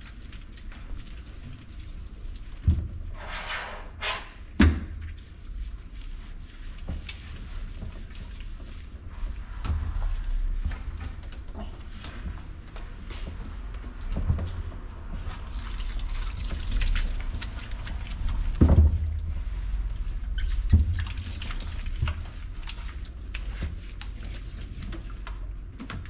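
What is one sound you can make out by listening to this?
Hands rub and squelch through a dog's wet fur.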